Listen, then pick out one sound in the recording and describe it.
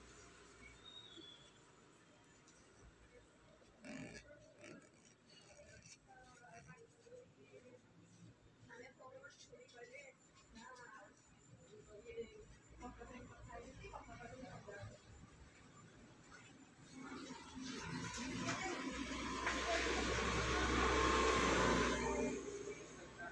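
A marker pen squeaks and scratches softly on paper.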